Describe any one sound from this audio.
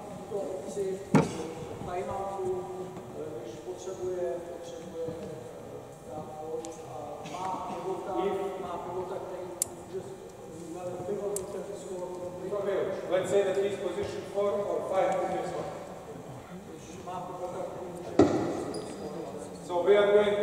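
Men call out and talk in a large echoing hall.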